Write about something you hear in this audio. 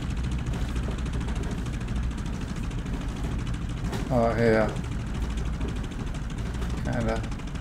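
A propeller plane's engine idles with a steady low drone.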